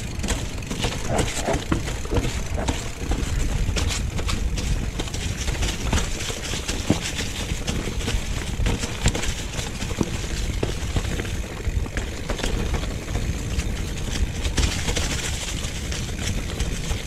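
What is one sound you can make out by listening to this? Bicycle tyres crunch and rattle over dry leaves and stones.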